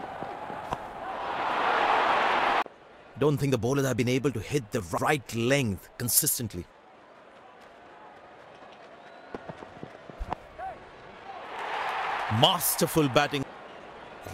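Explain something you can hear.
A large crowd cheers and roars loudly.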